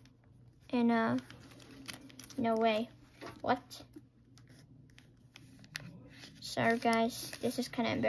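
Plastic binder pages rustle and flip softly.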